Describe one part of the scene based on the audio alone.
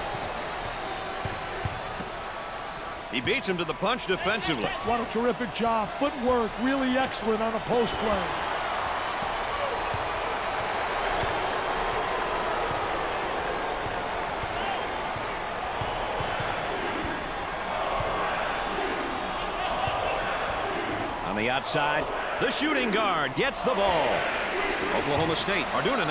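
A crowd cheers and murmurs steadily in a large echoing arena.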